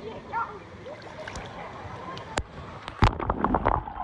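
Water splashes as a young man dunks his head.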